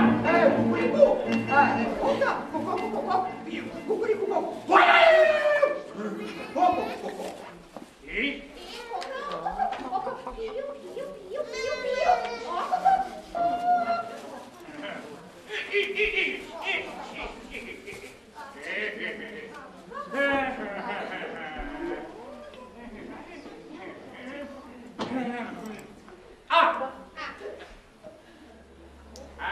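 A man speaks in playful, exaggerated character voices close by.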